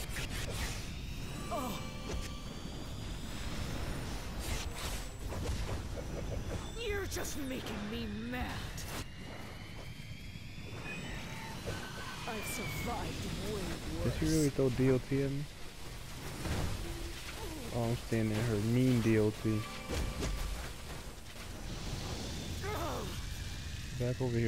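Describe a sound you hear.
Energy blasts crackle and boom in a fast fight.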